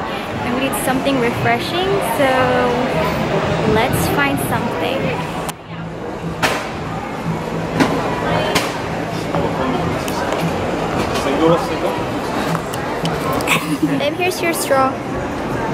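Outdoor crowd chatter and street bustle murmur in the background.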